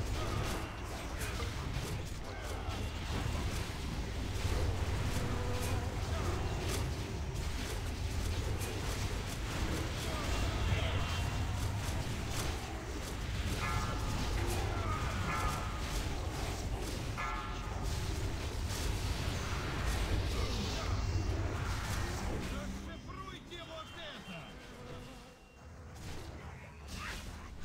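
Spell effects crackle and burst in a video game battle.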